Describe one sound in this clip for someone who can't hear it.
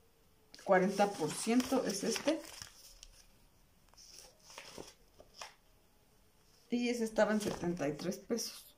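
Paper pages rustle as a catalogue is handled.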